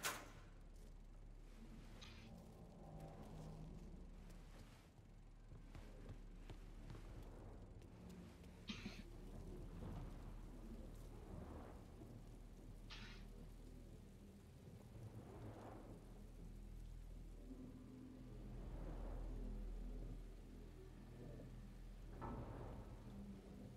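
Footsteps thud slowly.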